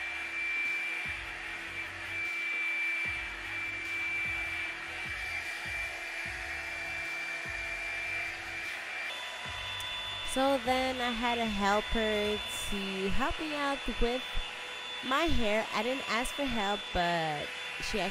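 A hair dryer brush whirs steadily close by.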